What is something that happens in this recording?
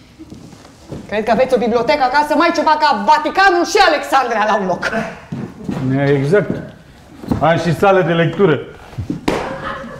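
An elderly man speaks with animation on a stage.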